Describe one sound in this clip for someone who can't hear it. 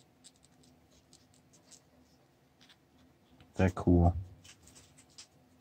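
Small metal parts click and scrape softly as hands work them close by.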